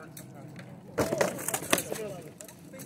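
Weapons strike wooden shields with loud knocks.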